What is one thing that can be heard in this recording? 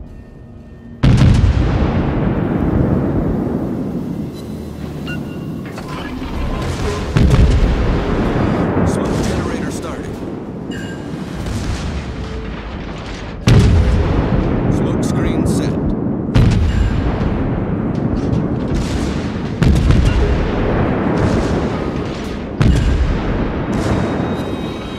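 Heavy naval guns fire in loud booming blasts that rumble away.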